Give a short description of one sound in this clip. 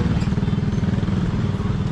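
A motorbike engine putters close by.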